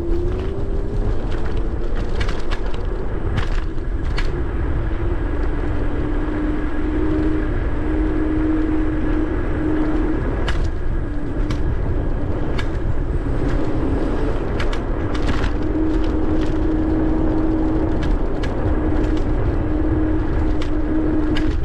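Wheels roll and rumble over pavement.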